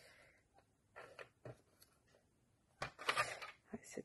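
A paper trimmer blade slides along and cuts paper.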